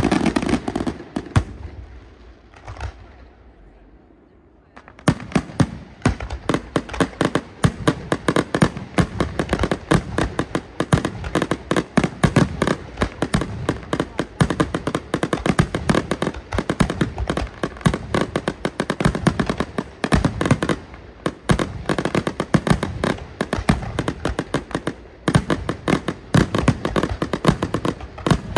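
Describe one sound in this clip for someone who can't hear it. Fireworks burst in rapid, crackling bangs outdoors.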